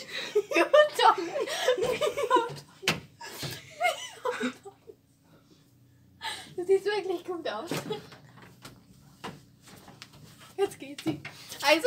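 A young girl laughs close by.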